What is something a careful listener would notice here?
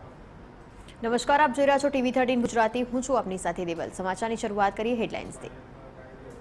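A young woman speaks clearly into a microphone, like a news presenter.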